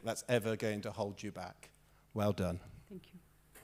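An elderly man speaks calmly into a microphone in an echoing hall.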